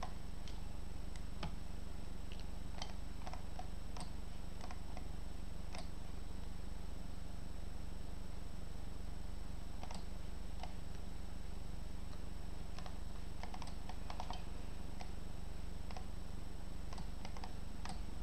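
A computer mouse clicks sharply every few seconds.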